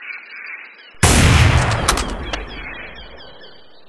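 A bullet whooshes through the air and strikes with a heavy boom.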